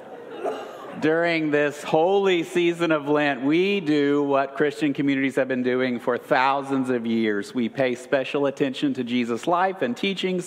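An older man speaks calmly and warmly into a microphone in a large echoing room.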